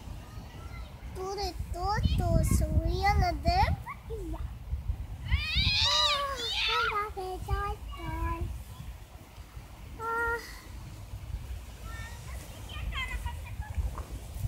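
A young girl talks and sings in a high voice close by.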